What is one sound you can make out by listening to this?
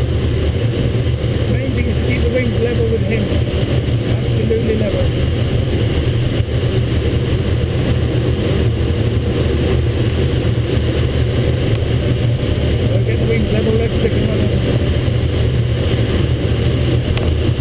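Wind rushes steadily over a glider's canopy.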